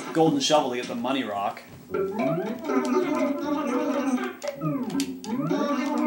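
Quick, chirping babble from a video game plays through a television speaker.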